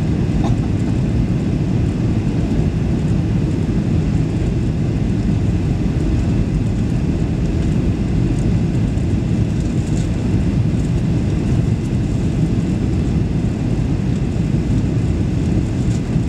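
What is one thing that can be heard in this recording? Jet engines roar steadily from inside an airplane cabin.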